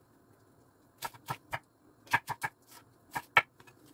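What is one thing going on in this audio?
A knife chops cabbage on a cutting board in quick, sharp knocks.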